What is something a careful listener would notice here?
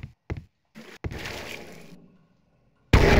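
Water splashes as a body drops into it.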